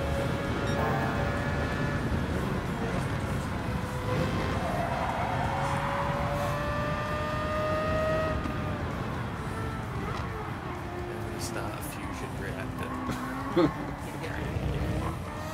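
A racing car engine roars and whines, rising and falling in pitch as the car shifts gears.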